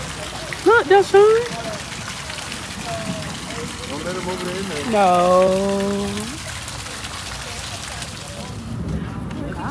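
A fountain jet splashes into a pond.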